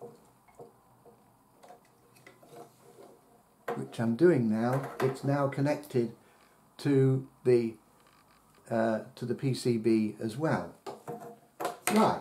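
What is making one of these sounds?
A plastic connector clicks as it is pressed into a socket.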